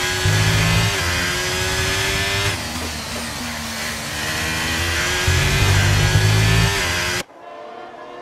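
A racing car engine roars loudly up close, shifting through gears.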